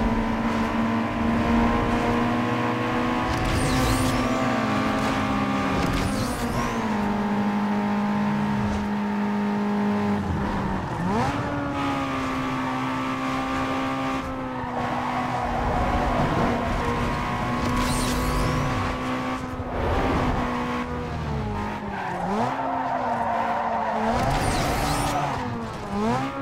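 A racing car engine roars at high revs, with pitch shifting as gears change.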